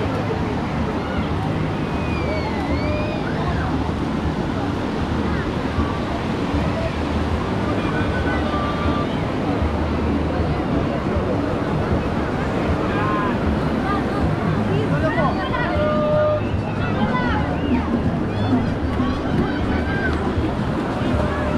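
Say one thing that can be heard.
Waves wash in steadily nearby.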